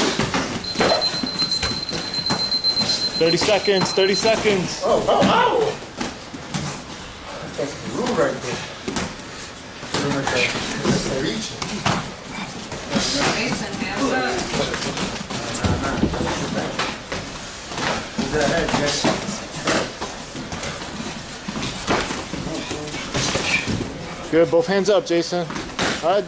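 Gloved punches and kicks thud against pads.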